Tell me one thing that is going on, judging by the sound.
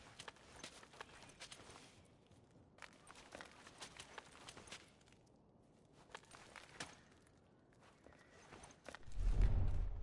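Footsteps shuffle softly on a hard floor.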